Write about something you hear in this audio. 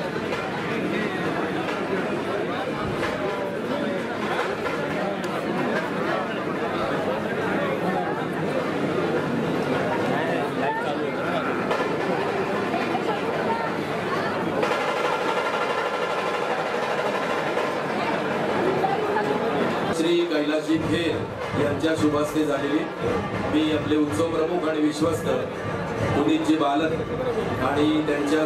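A large crowd of men and women chatters loudly.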